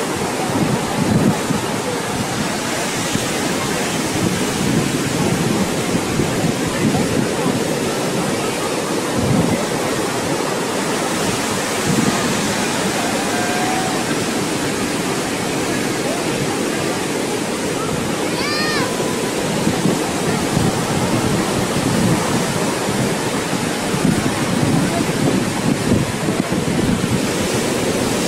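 Heavy waves crash and roar onto a shore outdoors.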